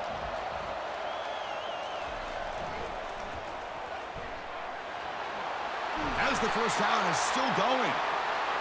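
A stadium crowd roars steadily and swells louder near the end.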